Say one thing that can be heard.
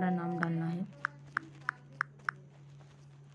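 Phone keyboard taps click softly, one after another.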